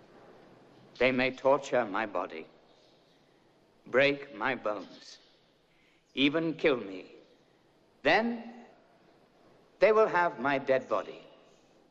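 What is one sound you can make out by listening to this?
A man speaks loudly and with animation in short bursts.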